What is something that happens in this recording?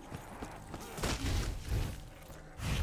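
A weapon fires a crackling energy beam.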